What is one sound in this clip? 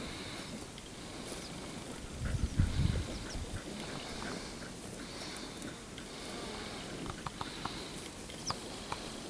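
Wind blows outdoors, rumbling in gusts.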